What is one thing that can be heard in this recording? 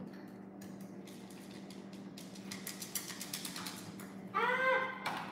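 Plastic toys clatter and click on a table.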